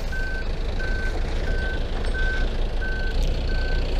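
A forklift engine hums nearby.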